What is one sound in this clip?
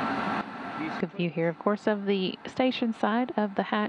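A man speaks calmly over a radio headset.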